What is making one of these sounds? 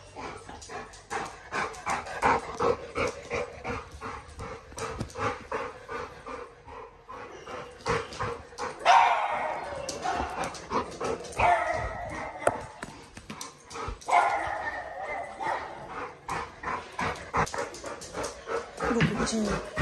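A dog's claws click and tap on a hard floor.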